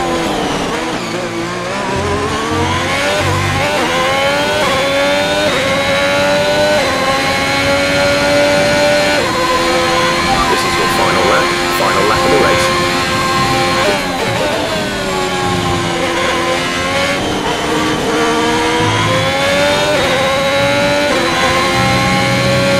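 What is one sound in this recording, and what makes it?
Gear changes crack sharply as the engine shifts up and down.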